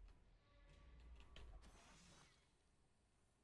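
A trap springs with a loud metallic clash.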